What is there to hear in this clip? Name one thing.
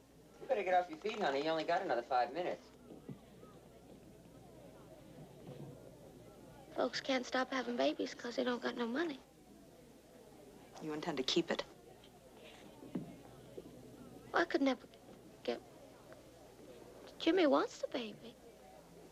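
A young woman speaks in a tense, pleading voice close by.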